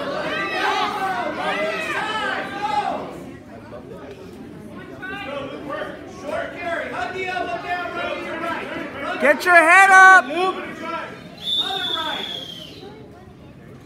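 Several men and women shout and cheer loudly in a large echoing hall.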